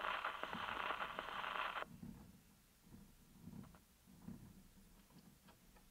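A gramophone tone arm clunks as it is lifted and set aside.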